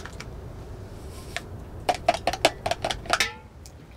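Light taps and clicks come from a cup being handled.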